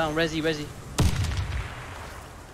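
A rifle shot cracks once and echoes.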